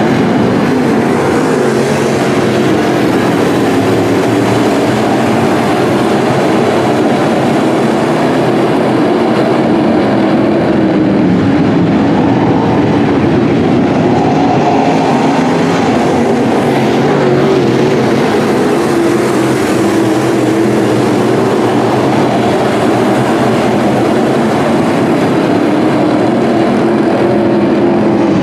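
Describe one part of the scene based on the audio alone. Race car engines roar loudly and steadily.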